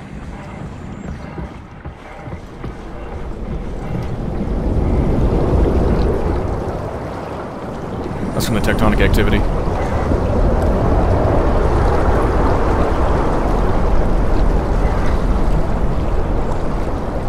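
Water rushes and rumbles steadily, heard from underwater.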